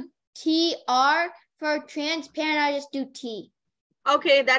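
A young boy speaks over an online call.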